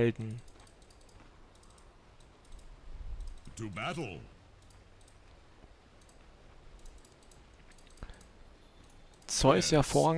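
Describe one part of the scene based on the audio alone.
A game hero's footsteps patter softly.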